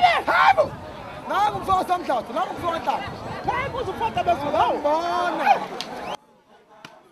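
A man shouts loudly and with excitement close by.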